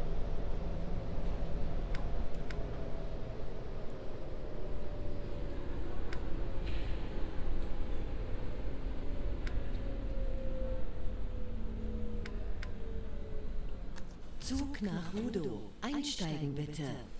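A train rumbles steadily along the rails with a slowly falling motor whine.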